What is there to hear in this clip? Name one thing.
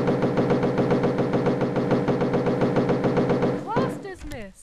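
Heavy footsteps stomp in a quick, steady rhythm.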